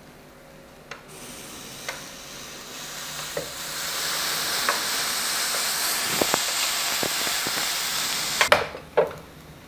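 Steam hisses loudly from a waffle iron.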